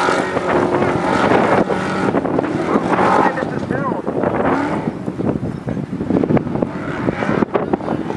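An off-road race truck's engine roars at full throttle.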